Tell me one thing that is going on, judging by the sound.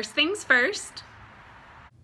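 A woman speaks cheerfully, close up.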